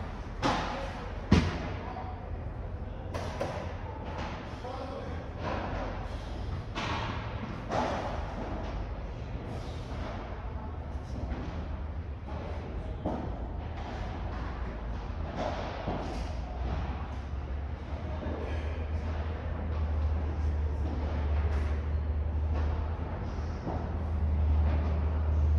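Padel rackets strike a ball with sharp pops, echoing in a large hall.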